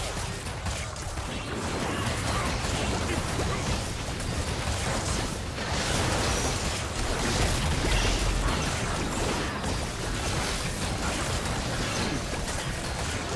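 Game spell effects crackle, whoosh and burst in a busy fight.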